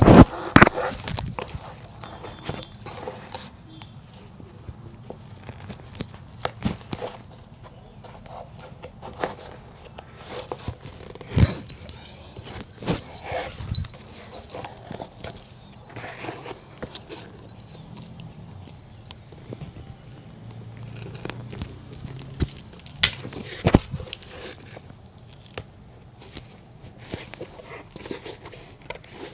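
A tool scrapes and taps against a leather shoe.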